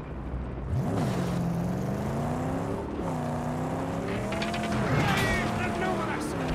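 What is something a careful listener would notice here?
A car engine roars and revs, rising and falling in pitch.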